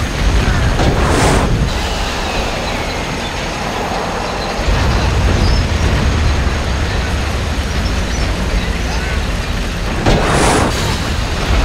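Explosions boom at a distance.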